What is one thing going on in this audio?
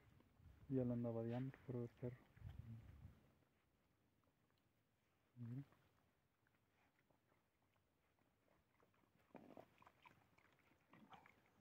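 Dogs chew and lap up food close by.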